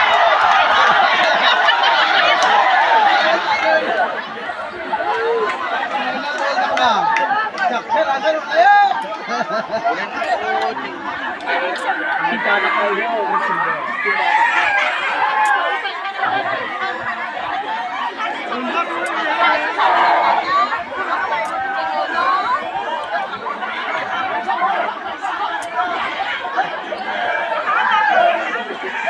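Children shout and laugh excitedly nearby.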